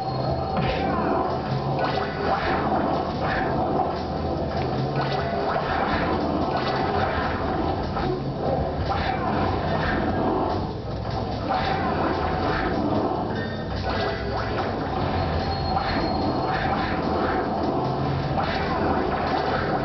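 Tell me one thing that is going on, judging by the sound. Explosions boom and crackle from a video game through a television speaker.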